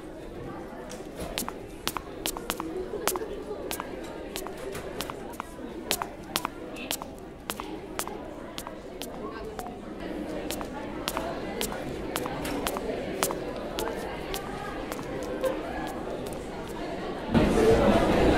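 Footsteps tap along a hard floor at a steady walking pace.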